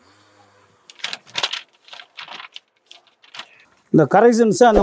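Paper rustles as sheets are handled and folded.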